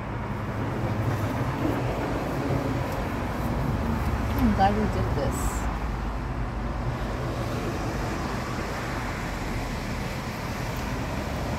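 Waves break and wash onto a nearby shore.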